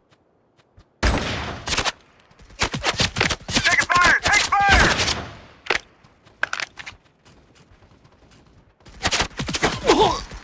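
A rifle fires sharp shots in bursts.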